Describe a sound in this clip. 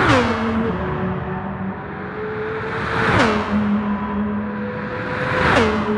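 A racing car engine whines loudly at high speed and drops in pitch as it rushes past, again and again.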